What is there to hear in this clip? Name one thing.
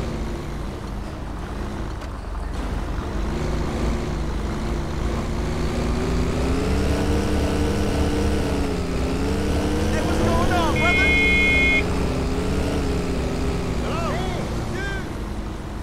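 A bus engine hums steadily, rising and falling in pitch as it drives.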